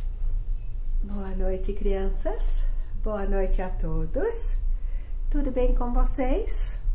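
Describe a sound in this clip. An elderly woman speaks warmly and close by.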